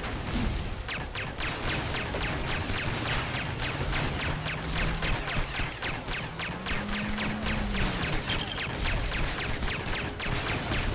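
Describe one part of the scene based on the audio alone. Rapid gunfire pops and clatters.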